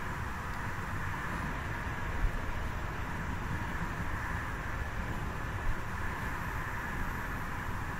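Train wheels clatter over the rails.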